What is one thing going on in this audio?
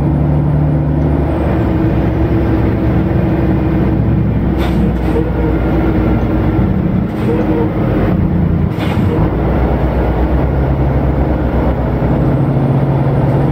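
Tyres roll on a road with a steady rumble.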